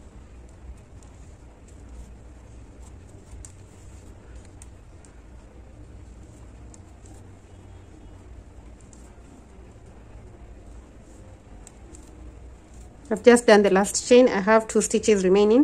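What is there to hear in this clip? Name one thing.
A crochet hook softly rustles through yarn.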